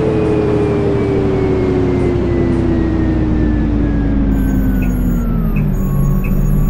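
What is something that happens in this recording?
A bus engine hums and whines, its pitch slowly falling as the bus slows down.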